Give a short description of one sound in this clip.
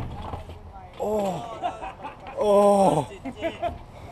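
A young man cries out in pain nearby.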